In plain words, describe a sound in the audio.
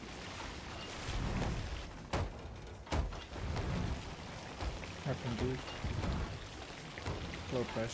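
Seawater sprays in through holes in a wooden hull.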